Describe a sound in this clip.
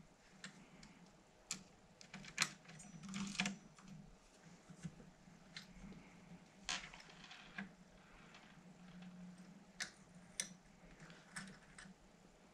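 A screwdriver turns screws out of a metal heatsink with small clicks and scrapes.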